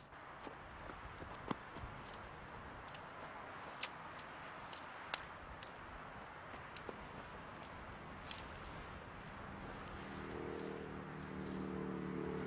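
Dry brush rustles and twigs snap as people push through undergrowth outdoors.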